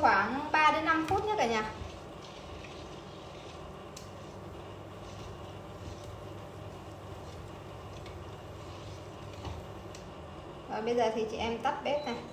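A metal spoon stirs liquid in a pot.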